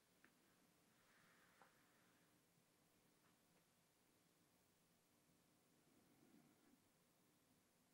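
A man breathes slowly and softly close to a microphone.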